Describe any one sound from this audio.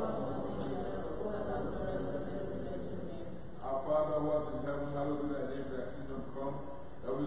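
A man speaks calmly through a microphone and loudspeakers in an echoing room.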